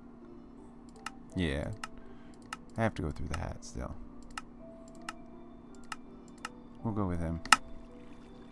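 Game menu buttons click softly at intervals.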